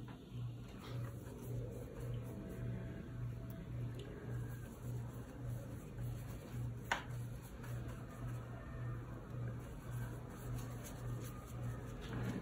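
A brush swishes and dabs in wet paint.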